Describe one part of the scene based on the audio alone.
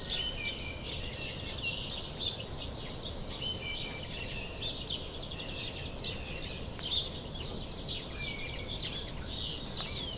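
A squirrel gnaws at a pine cone.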